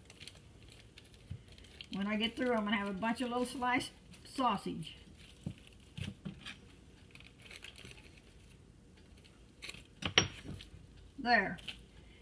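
Plastic wrap crinkles as it is peeled away.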